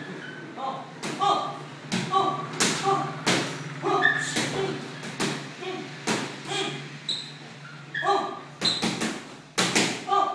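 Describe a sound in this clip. Boxing gloves thud against a sparring partner's gloves and body.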